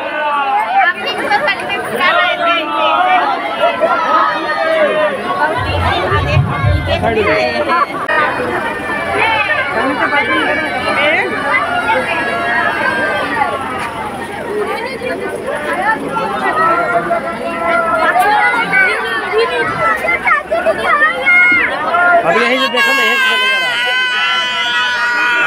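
A crowd of women and men sings and chants loudly together outdoors.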